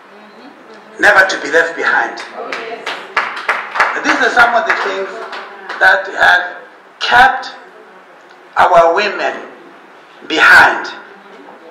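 An elderly man speaks with feeling into a microphone, heard through a loudspeaker.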